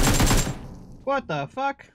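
A man speaks into a microphone, close up.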